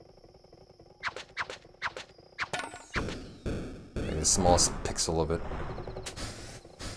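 Electronic game sound effects chime and pop from a small speaker.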